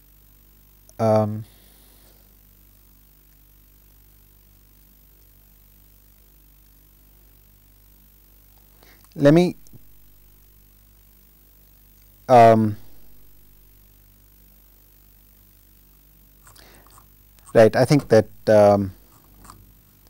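A man speaks slowly in short bursts with long pauses, close to a microphone.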